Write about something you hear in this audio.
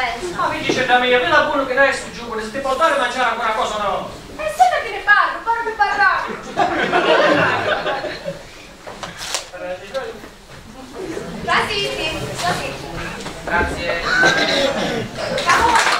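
A woman speaks from a stage, a little distant.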